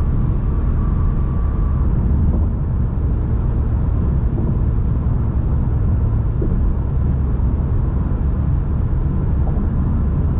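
A car's engine rumbles steadily as it drives along a road.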